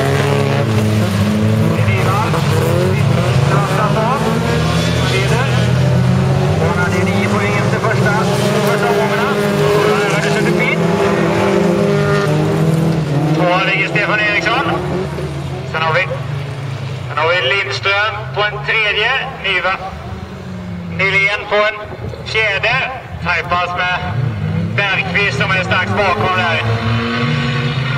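Racing car engines roar and rev loudly close by.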